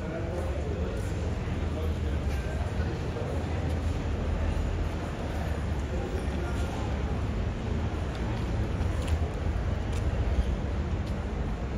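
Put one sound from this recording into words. Young people talk quietly nearby outdoors.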